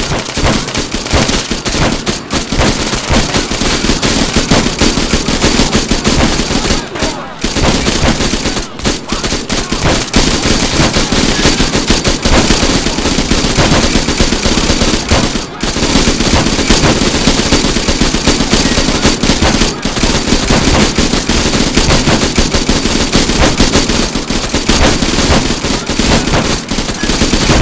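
Rapid bursts of automatic gunfire ring out close by, over and over.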